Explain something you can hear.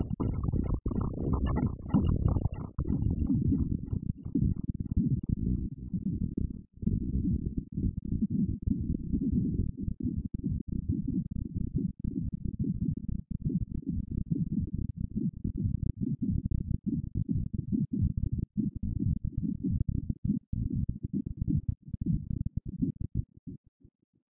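A modular synthesizer plays deep, pulsing electronic tones.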